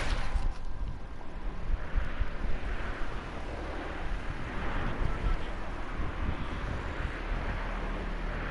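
Air hisses and flutters over a gliding wing.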